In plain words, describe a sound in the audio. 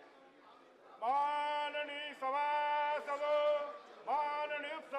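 A large group of people sings together in an echoing hall.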